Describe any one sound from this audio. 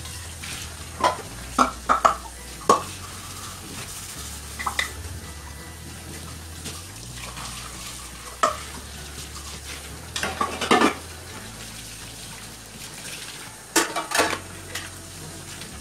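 Dishes clink and clatter as they are washed.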